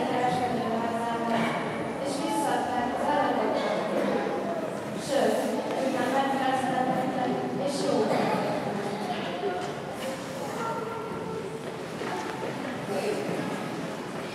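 A man speaks with animation through a microphone, echoing in a large hall.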